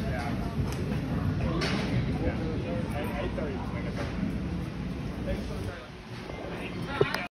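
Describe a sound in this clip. Several people chatter in a large, echoing room.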